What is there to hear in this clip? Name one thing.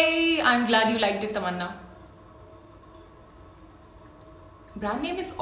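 A young woman speaks brightly and close to a microphone.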